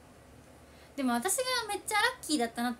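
A young woman speaks close to a microphone in a high, animated voice.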